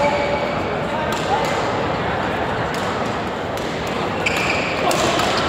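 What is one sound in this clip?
Sports shoes squeak sharply on a court floor.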